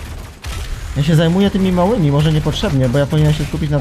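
A man talks loudly and with animation close to a microphone.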